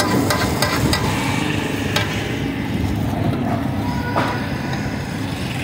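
Hot oil sizzles and bubbles in a large pan.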